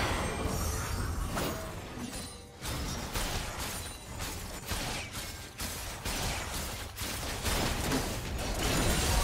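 Fantasy game spell effects whoosh and crackle.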